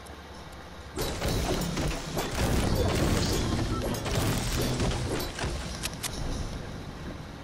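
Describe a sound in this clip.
A pickaxe strikes rock with repeated sharp knocks.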